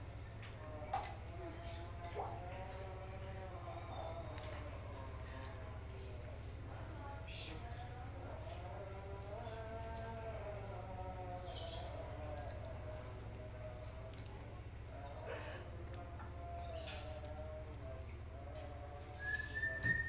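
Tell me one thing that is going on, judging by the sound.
An elderly man speaks softly and steadily, close by.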